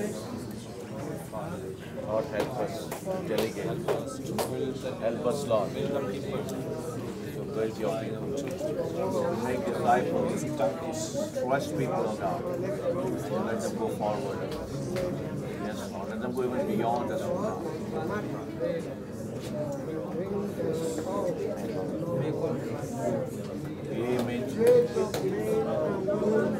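A group of men and women talk and murmur at once in a room.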